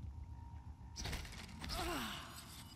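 A heavy blow lands with a crackling burst.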